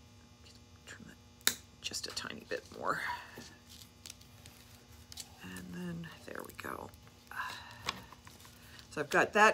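Small metal pieces click and tap against a wooden frame.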